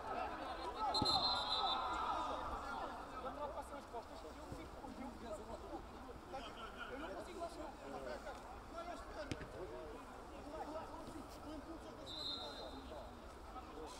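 A referee's whistle blows in short shrill blasts.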